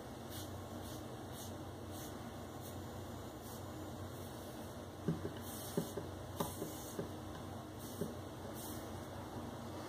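A razor scrapes softly across a man's scalp.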